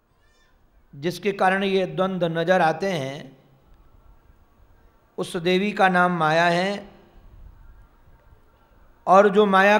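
A middle-aged man chants in a singing voice through a microphone.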